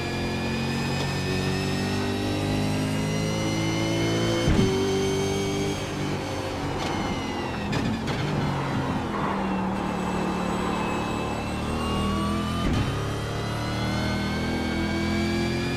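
A racing car engine roars loudly, rising and falling in pitch as the gears shift.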